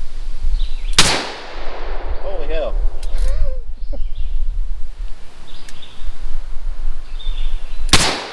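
A pistol fires loud single shots outdoors.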